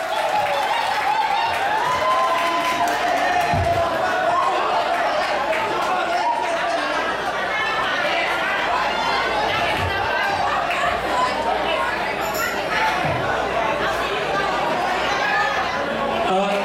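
Band music plays loudly through loudspeakers in a large room.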